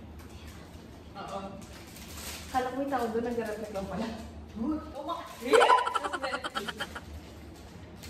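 Young women talk and laugh close by, with animation.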